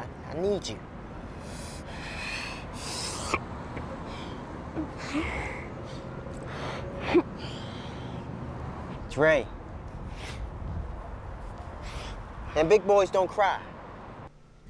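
A young man speaks quietly nearby.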